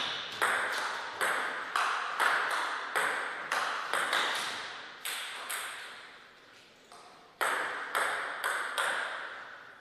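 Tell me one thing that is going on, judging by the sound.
A table tennis ball clicks sharply back and forth off paddles and the table, ringing in an echoing hall.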